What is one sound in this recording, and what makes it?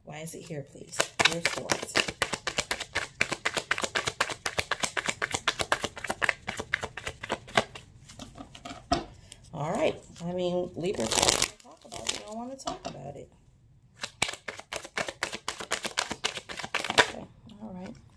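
Playing cards riffle and flick rapidly as they are shuffled by hand.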